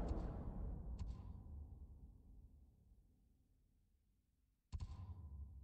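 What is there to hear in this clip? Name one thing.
A soft menu click sounds.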